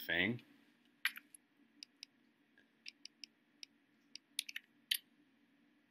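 Short menu clicks tick several times.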